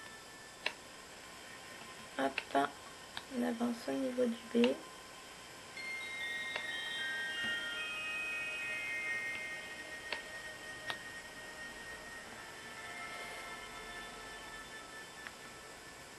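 A pen taps lightly on a hard surface with small clicks.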